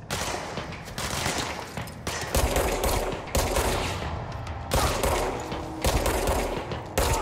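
Pistol shots boom one after another, each followed by a reverberating echo.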